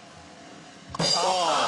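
A man cries out loudly.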